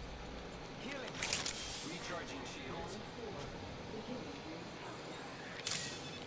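A syringe clicks and hisses as a game character heals.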